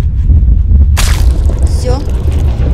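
An explosion bursts with a sudden crack.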